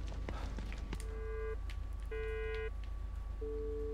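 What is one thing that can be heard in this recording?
An electronic device gives off short steady beeping tones.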